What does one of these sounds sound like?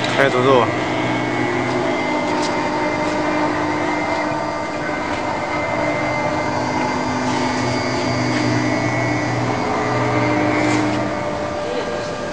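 A cutting machine whines steadily as it carves wood.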